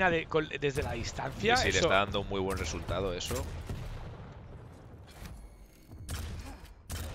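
Gunfire bursts from a rifle in a game.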